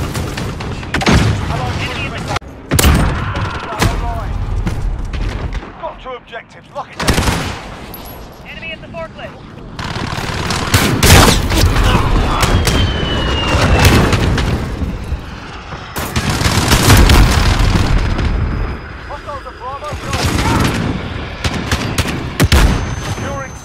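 Gunfire cracks in loud bursts.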